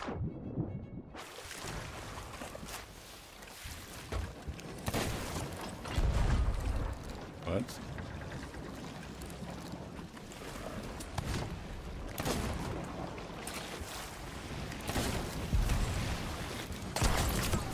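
Ocean waves wash steadily.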